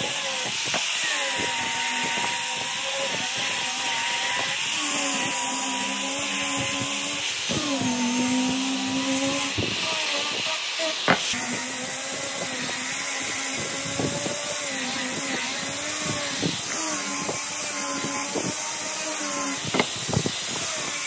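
An angle grinder's motor whines steadily, its pitch dipping and rising.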